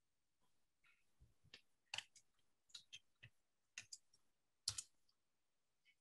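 A computer mouse clicks a few times.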